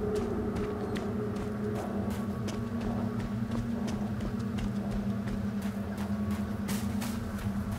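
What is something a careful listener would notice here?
Footsteps thud quickly over rough ground.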